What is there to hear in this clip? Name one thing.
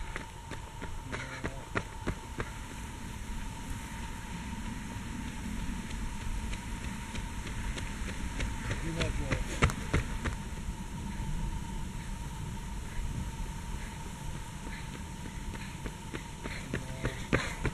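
Running footsteps slap on asphalt as runners pass close by.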